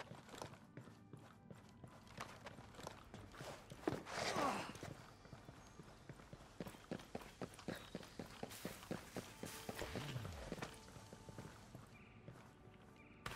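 Footsteps tap softly on wooden boards.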